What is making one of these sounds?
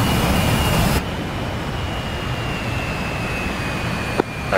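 Sea waves wash and splash.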